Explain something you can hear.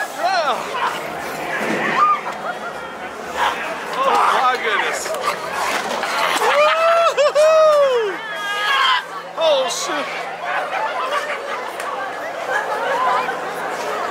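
A crowd of adults chatters and calls out nearby outdoors.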